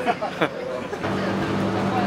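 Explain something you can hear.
A middle-aged man laughs close by.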